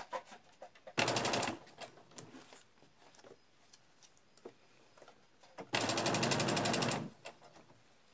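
A sewing machine whirs in short, fast bursts.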